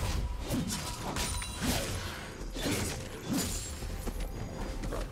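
Game characters clash, with spell effects whooshing and crackling.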